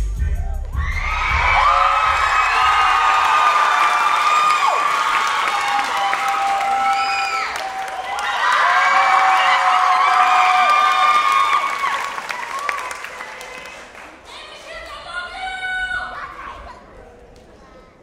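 A crowd cheers and screams loudly in a large hall.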